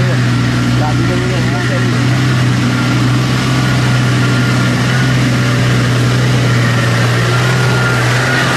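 A Nissan Patrol's engine labours as the four-wheel drive pushes through deep mud.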